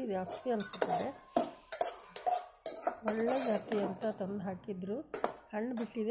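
A metal spoon scrapes and stirs inside a pot.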